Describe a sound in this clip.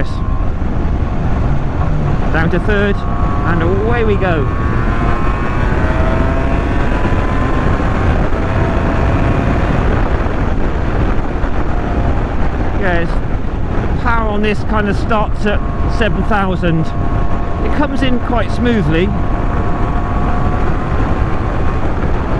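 A motorcycle engine hums and revs up and down as the bike rides along.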